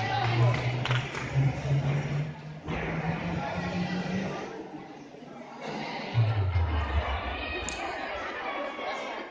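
Voices of a crowd murmur and echo in a large hall.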